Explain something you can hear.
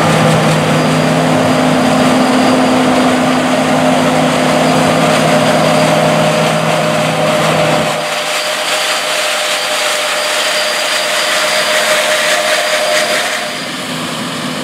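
A combine harvester's engine roars loudly close by.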